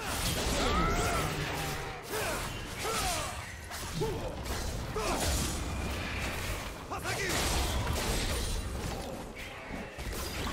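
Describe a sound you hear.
Video game combat sound effects clash and whoosh throughout.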